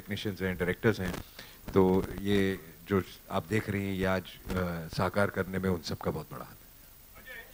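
A man speaks calmly into a microphone over a loudspeaker.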